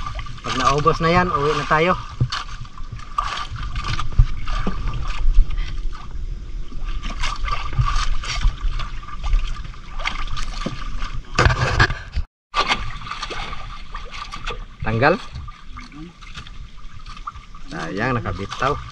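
Water laps against a wooden boat's hull.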